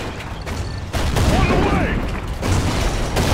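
An explosion bursts nearby with a heavy roar.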